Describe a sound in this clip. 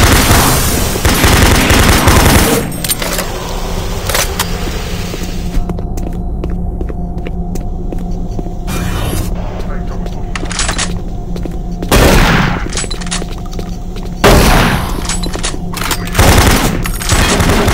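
A shotgun fires with loud booming blasts.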